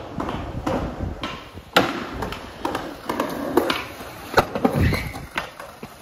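A skateboard lands with a loud clack on concrete.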